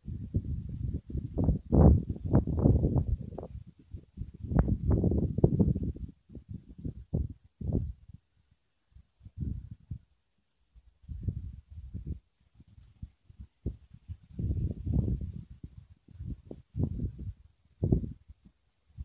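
Hands scrape and rustle in dry soil close by.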